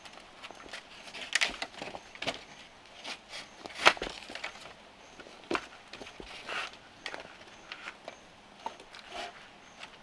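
Bamboo strips rustle and scrape as they are woven.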